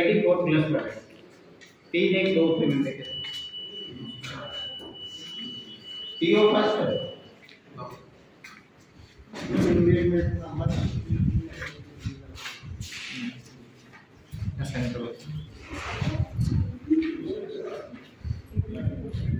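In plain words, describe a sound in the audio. Several adults talk in the background.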